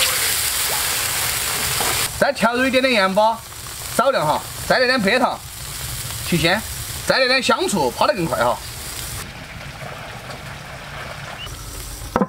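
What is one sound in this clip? Sauce bubbles and sizzles in a wok.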